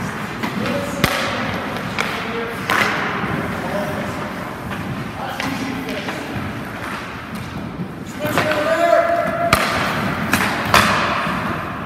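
A hockey stick strikes a puck with a sharp crack.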